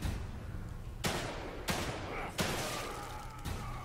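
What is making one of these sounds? Gunshots ring out and echo.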